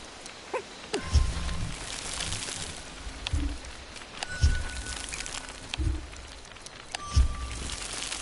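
A deep magical burst booms with a bright chime, several times.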